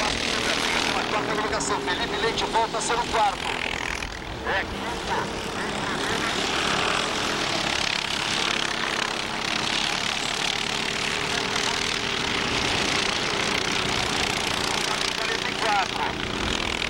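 Go-kart engines buzz and whine around a track outdoors.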